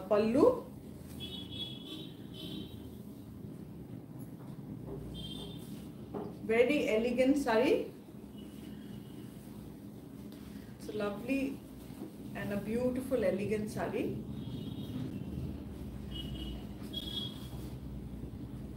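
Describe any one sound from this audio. Fabric rustles as a woman unfolds and drapes a cloth.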